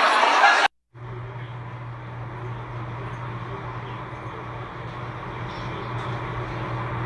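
A crowd of people murmurs and talks faintly.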